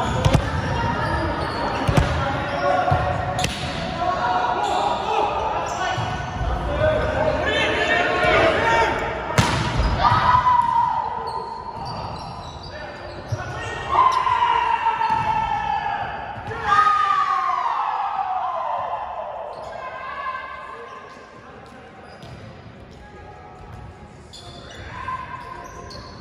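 Young men call out to one another across a large echoing gym.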